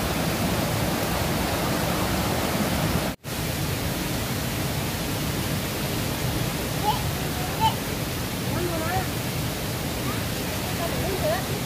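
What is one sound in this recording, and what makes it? Water rushes steadily over rocks in a stream.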